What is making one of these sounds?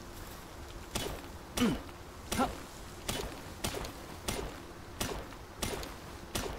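A pickaxe strikes rock again and again with sharp knocks.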